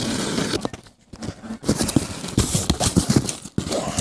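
Packing tape rips off a cardboard box.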